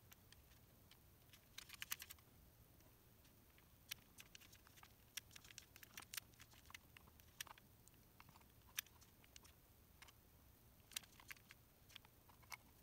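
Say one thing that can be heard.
Plastic parts of a battery casing click and rattle in a hand.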